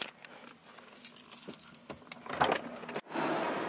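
A seatbelt buckle clicks open.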